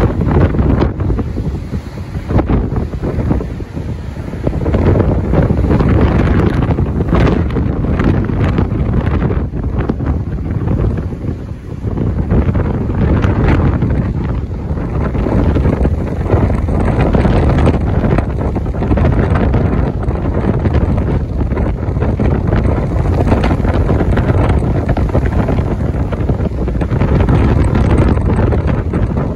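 Rough surf crashes and roars against the shore.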